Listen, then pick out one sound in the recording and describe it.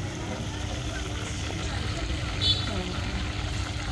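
Oil sizzles and bubbles as food fries.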